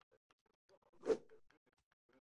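A short interface click sounds as an item is moved.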